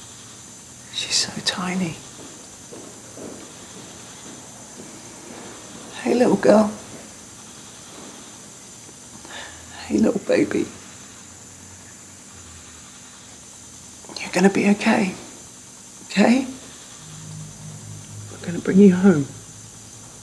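A man speaks quietly and emotionally close by, in short bursts with pauses.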